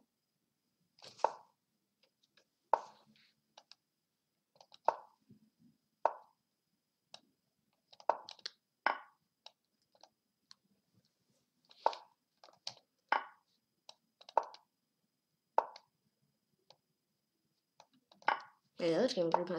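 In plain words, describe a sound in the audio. Short knocks of chess pieces being set down sound every second or so.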